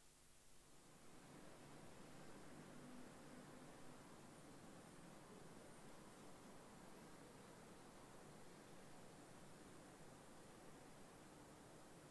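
A diesel locomotive engine rumbles steadily as the train rolls slowly along.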